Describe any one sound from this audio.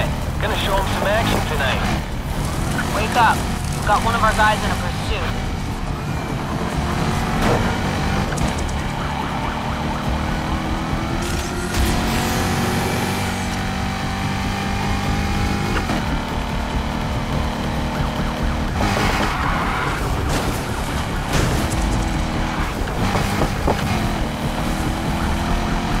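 Tyres skid and scrape over grass and gravel.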